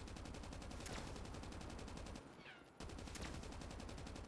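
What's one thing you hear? Sniper rifle shots crack out.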